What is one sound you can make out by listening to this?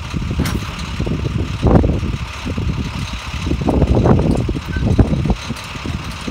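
A loaded hand truck rolls and rattles down a metal ramp.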